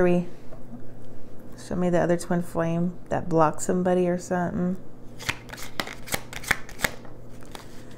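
Playing cards shuffle and tap on a table.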